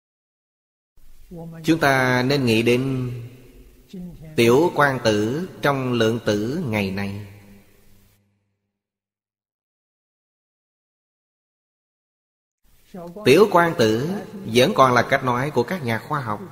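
An elderly man speaks calmly and close to a microphone, as in a sermon.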